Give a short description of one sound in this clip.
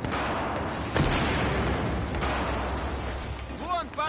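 An explosion booms loudly and rumbles.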